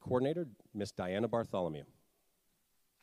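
An older man speaks loudly through a microphone.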